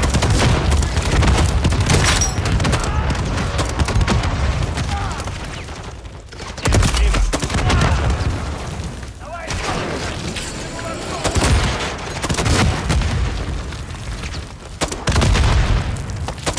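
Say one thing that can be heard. Explosions boom loudly with deep rumbling.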